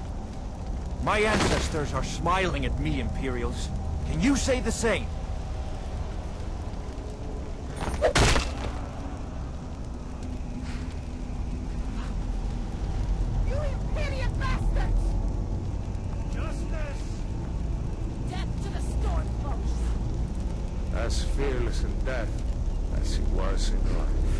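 A man speaks sternly nearby.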